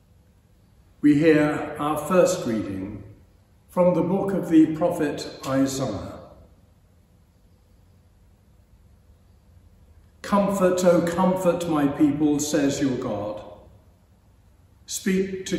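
An elderly man reads aloud calmly and clearly, with pauses, in an echoing room.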